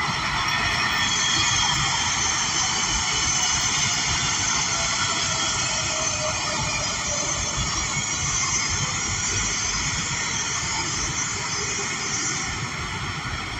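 Train wheels whine with a high, shifting squeal.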